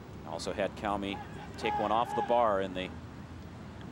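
Spectators shout and cheer close by outdoors.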